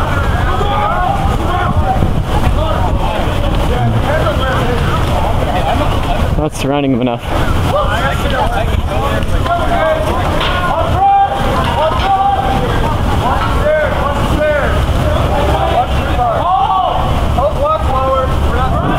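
A crowd of young men and women chatter and call out nearby outdoors.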